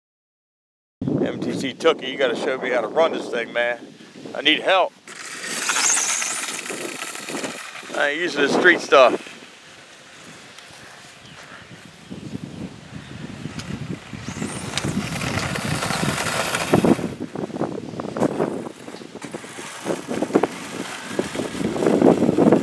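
A small electric motor whines and revs as a toy car races over pavement.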